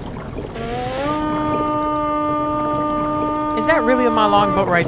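A horn blows a long, steady low note.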